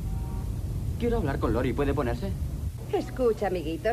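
A young woman talks into a phone.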